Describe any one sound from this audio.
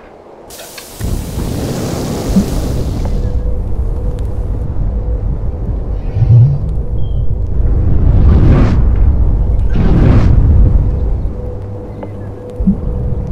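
A smoke bomb bursts and hisses loudly outdoors.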